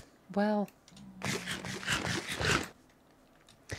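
Crunchy chewing sounds of food being eaten repeat quickly.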